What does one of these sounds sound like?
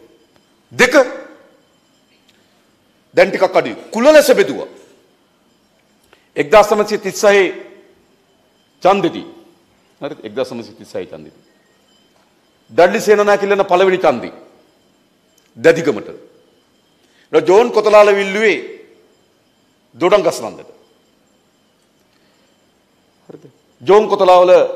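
A man speaks forcefully into a microphone over loudspeakers, in short bursts with pauses.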